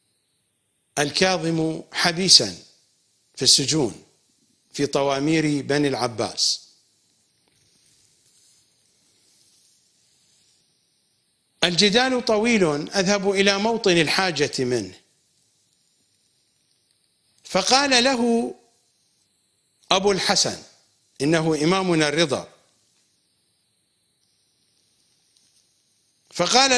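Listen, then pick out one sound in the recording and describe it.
An older man speaks calmly and with emphasis into a close microphone, pausing often.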